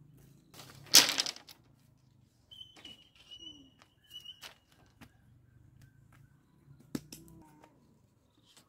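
Bamboo strips clatter and knock against each other.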